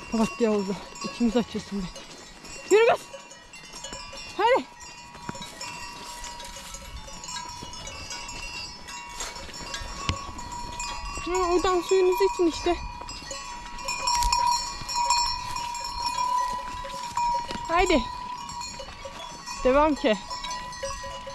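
Cows moo loudly nearby, outdoors.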